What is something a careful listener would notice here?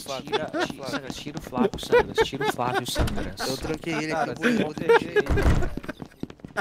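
A man laughs heartily, close to a microphone.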